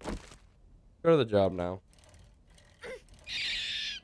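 A motorbike engine starts and revs.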